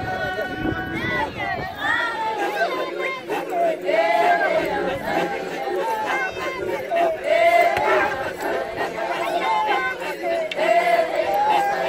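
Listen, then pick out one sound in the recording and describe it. A group of women sing together in loud voices.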